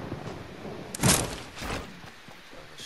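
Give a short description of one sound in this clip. Wooden building pieces snap into place with quick, sharp thuds.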